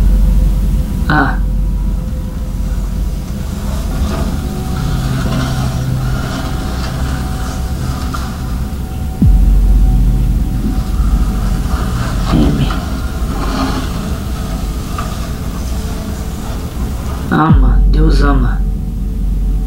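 A young man speaks slowly and quietly, close by.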